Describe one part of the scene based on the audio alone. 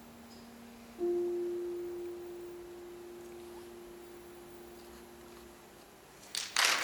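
A young woman sings a long held note into a microphone.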